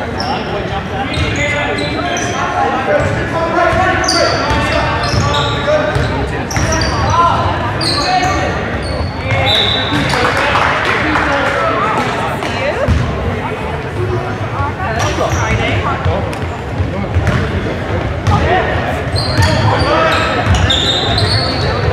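A crowd of spectators talks and calls out in a large echoing gym.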